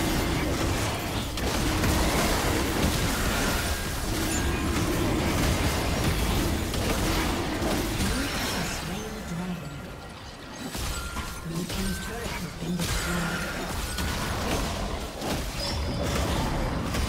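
Magic blasts and clashing weapons crackle and boom in a fast fight.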